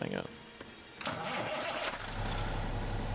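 A truck engine cranks and starts up.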